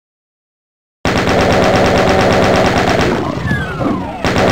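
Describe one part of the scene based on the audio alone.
A video game chaingun fires in rapid bursts.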